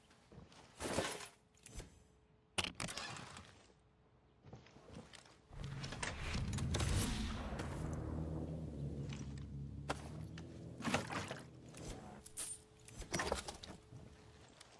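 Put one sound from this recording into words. Items clatter as they are picked up.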